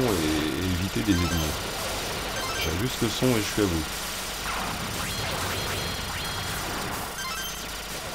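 Rapid electronic gunfire from an arcade shooting game rattles on.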